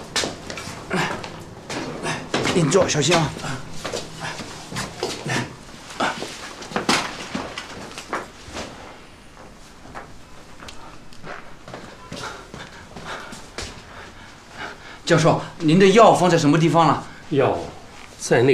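A young man speaks with concern, close by.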